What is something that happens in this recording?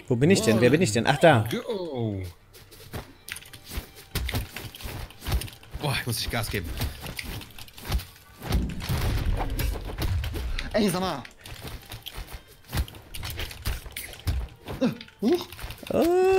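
Game sound effects of hits and whooshes play in quick bursts.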